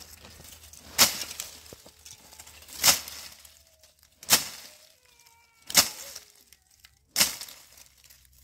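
A tool strikes the dry, stony ground in sharp, regular blows.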